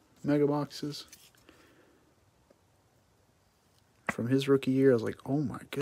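Hard plastic clicks and rustles as it is handled.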